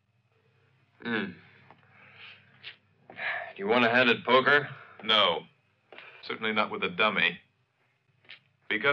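A man speaks nearby in a low, tense voice.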